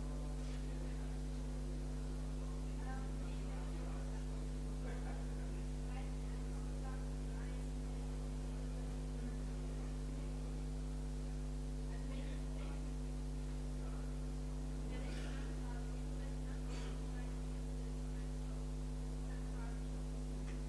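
A crowd murmurs quietly in a large echoing hall.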